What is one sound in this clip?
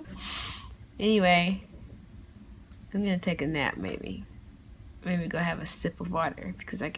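A young woman talks softly and playfully, close by.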